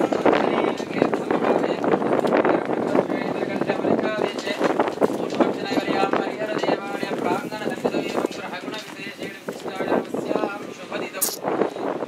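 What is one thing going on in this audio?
A crowd of men and women talks and chatters nearby.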